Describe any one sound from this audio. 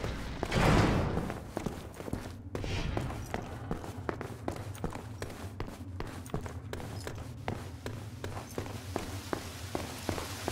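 Footsteps tap steadily on a stone floor and stairs.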